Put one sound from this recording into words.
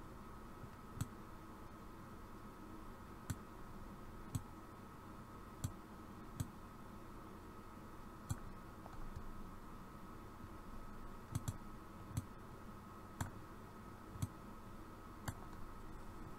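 A mouse clicks now and then, close by.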